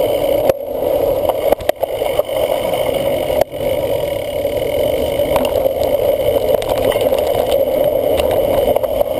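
Knobby tyres of a cyclocross bike roll over a dirt trail.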